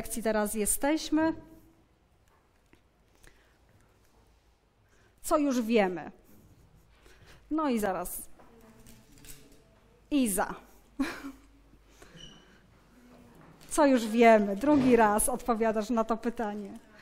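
A woman speaks calmly and clearly, in short phrases with pauses.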